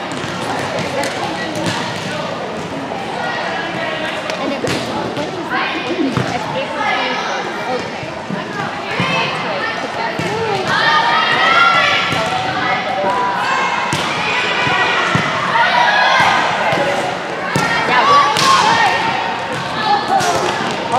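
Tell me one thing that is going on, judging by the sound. Teenage girls call out and chatter in a large echoing gym.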